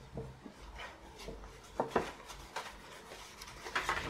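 A sponge scrapes and scratches across stiff paper.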